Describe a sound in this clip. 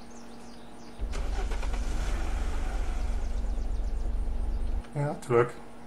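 A vehicle engine starts and rumbles steadily.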